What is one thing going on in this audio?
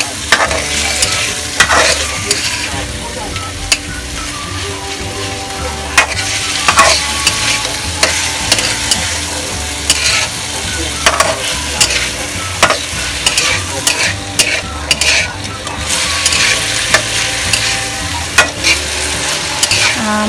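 Food sizzles in hot oil.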